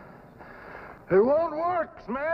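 A man shouts hoarsely nearby.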